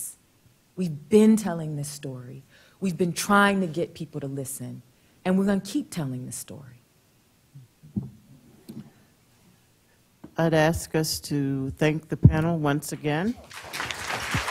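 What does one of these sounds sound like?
An elderly woman speaks calmly into a microphone in a large room.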